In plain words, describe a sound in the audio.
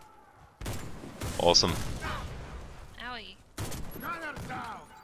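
Rifle shots crack loudly, each with a ringing echo.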